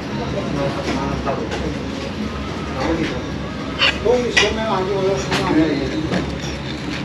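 A young man talks calmly close to the microphone.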